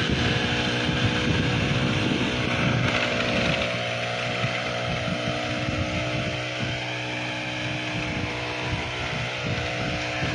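A hand tool scrapes through soil.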